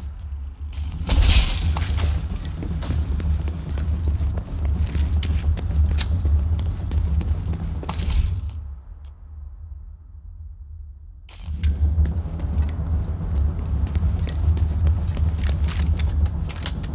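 Gunshots fire in rapid bursts, loud and sharp.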